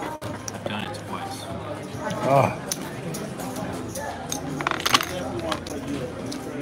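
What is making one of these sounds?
Casino chips clack together as they are stacked and moved.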